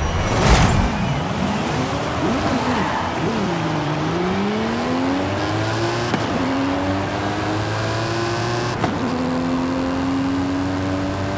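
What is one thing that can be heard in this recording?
A powerful car engine revs and roars, climbing in pitch again and again as it accelerates.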